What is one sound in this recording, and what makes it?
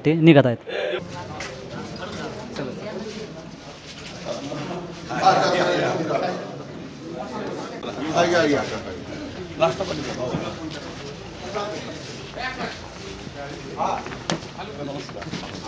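Several men talk in the background of a busy room.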